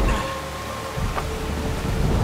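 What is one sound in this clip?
Wooden gears creak and rumble as they turn.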